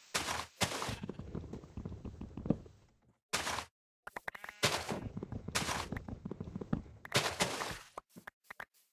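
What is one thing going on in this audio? Wood thumps repeatedly as a tree trunk is chopped.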